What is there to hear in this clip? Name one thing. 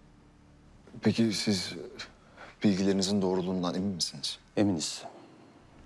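A young man asks a question in a calm, serious voice.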